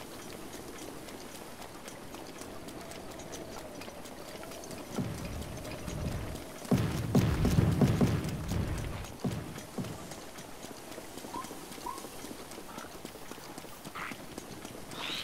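Footsteps run quickly over rough ground.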